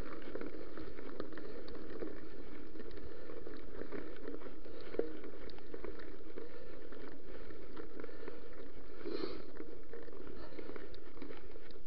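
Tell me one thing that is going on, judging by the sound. Bicycle tyres crunch and rattle over loose gravel.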